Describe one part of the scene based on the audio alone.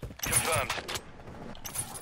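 A crossbow clicks as it is reloaded.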